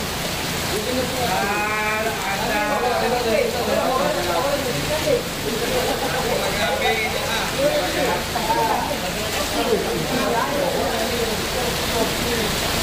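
Several men and women talk and chatter nearby, outdoors.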